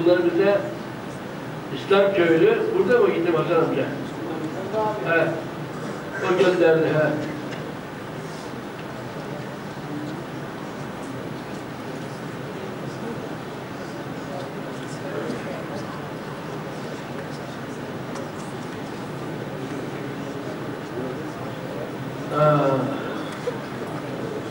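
An elderly man reads aloud slowly into a microphone, with pauses.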